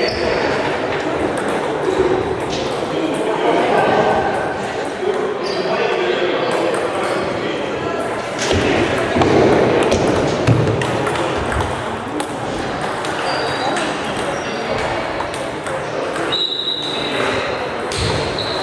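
Many ping-pong balls tick and bounce around a large echoing hall.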